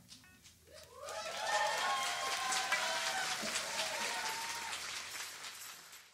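A crowd cheers and whoops loudly.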